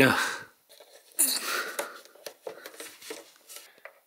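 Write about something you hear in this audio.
A rubber cap squeaks as it is pressed into a hole.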